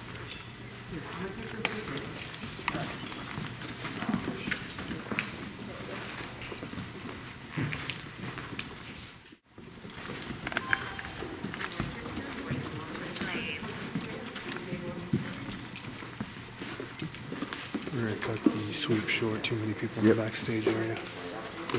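A man talks quietly nearby.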